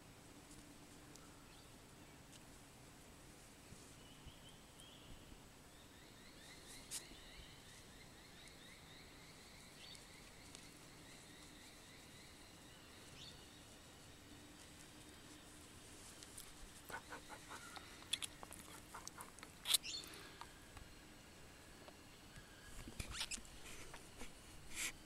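A hand rubs and scratches an animal's fur with a soft rustle.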